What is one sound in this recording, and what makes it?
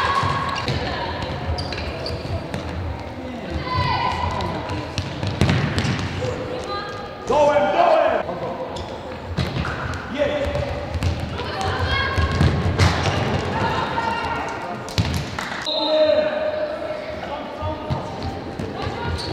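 Young women shout to each other across the court.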